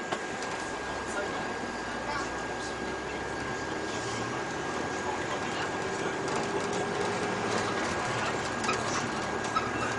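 A diesel city bus engine drones from inside as the bus pulls through a junction.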